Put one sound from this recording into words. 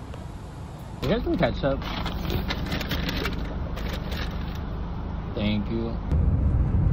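A young man speaks briefly up close.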